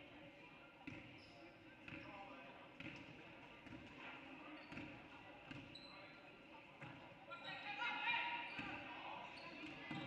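Sneakers squeak sharply on the court.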